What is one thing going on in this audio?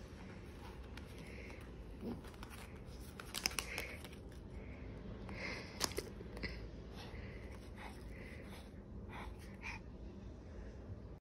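A small dog's claws scratch and tap against a wooden wall.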